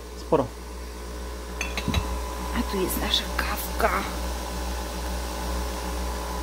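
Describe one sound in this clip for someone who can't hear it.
A coffee machine hums steadily.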